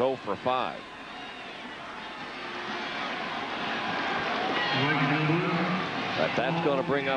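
A large stadium crowd cheers and applauds, swelling louder.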